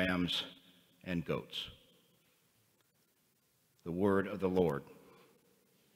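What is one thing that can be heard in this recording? A man reads aloud through a microphone in an echoing hall.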